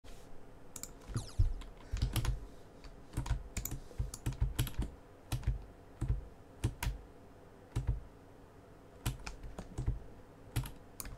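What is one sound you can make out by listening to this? Short game sound effects thump and click in quick bursts.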